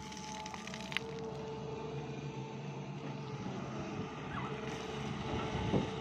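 Loose earth and stones tumble and thud as they are dumped.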